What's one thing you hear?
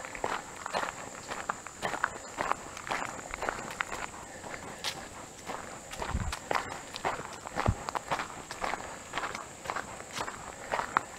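Footsteps crunch steadily on a dirt path outdoors.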